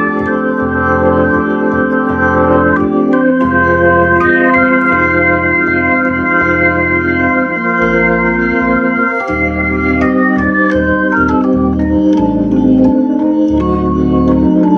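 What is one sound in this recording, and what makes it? An electric organ plays sustained chords with a deep bass line.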